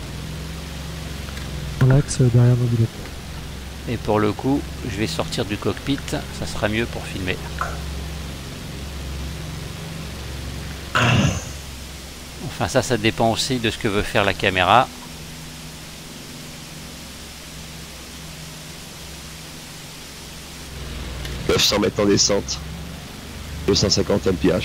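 A propeller plane's engine drones steadily.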